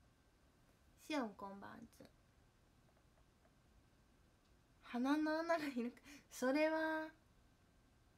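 A young woman speaks close by in a high, animated voice, in short bursts.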